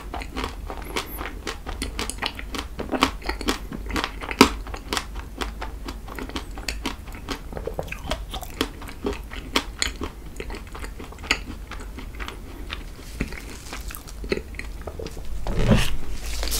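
A young man chews loudly and wetly close to a microphone.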